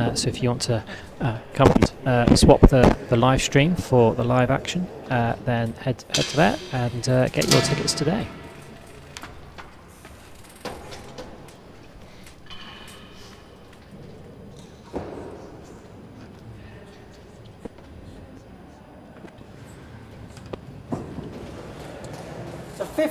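A ball smacks against hard walls and the floor in a large echoing hall.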